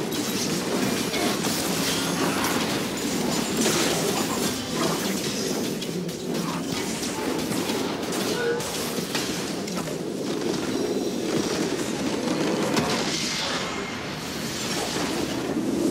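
Video game spell effects crackle, whoosh and boom in a busy fight.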